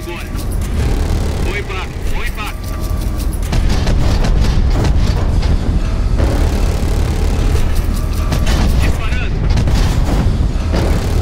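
Heavy gunfire thuds in rapid bursts.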